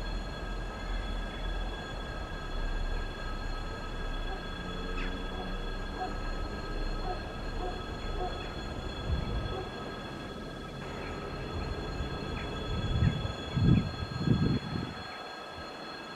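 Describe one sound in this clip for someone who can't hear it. An electric train rumbles slowly along the rails, drawing closer.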